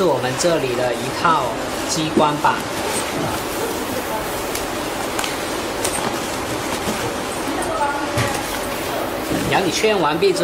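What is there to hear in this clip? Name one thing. Plastic wrapping rustles and crinkles as it is handled.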